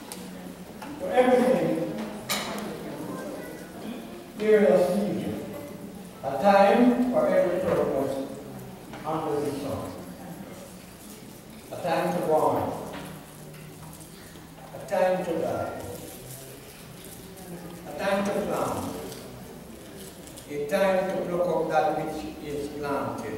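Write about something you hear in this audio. A man reads aloud into a microphone in bursts, in a large echoing hall.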